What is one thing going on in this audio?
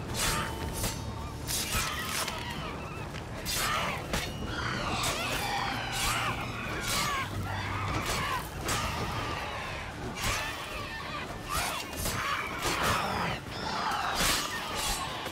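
Swords clash and strike in quick, sharp blows.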